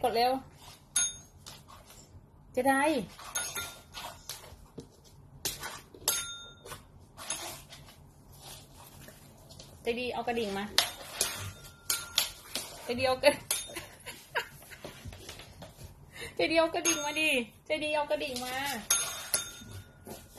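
A small desk bell dings sharply.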